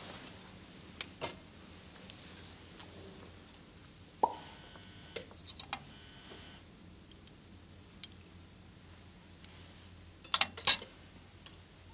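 A glass clinks against a metal tray.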